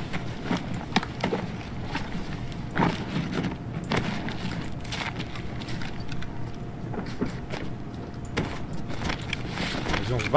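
Gear rustles and clicks as items are moved about.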